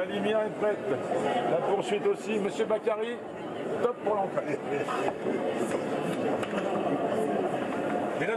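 Several adults chatter and talk at once nearby.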